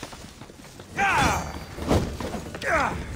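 A flaming weapon whooshes through the air.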